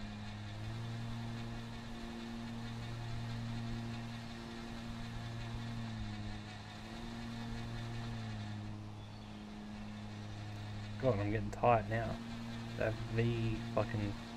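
A ride-on lawn mower engine hums steadily.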